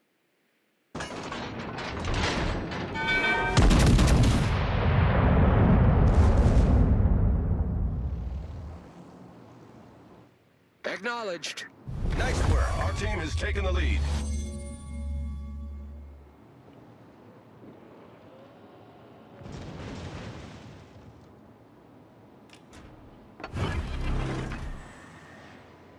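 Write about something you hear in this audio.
Heavy guns fire with loud, rumbling booms.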